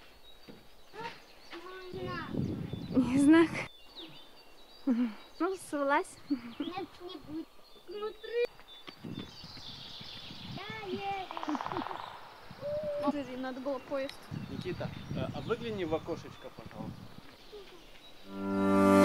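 A young boy talks with animation close by.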